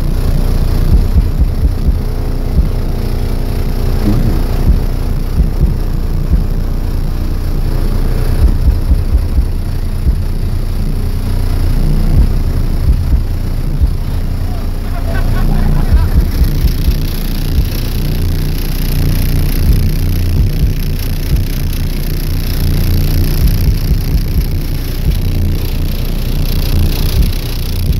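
Deep bass booms loudly from a car sound system.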